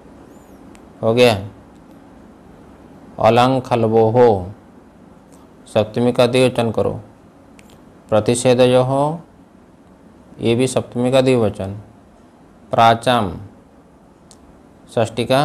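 A man recites slowly in short phrases with pauses, close to a microphone.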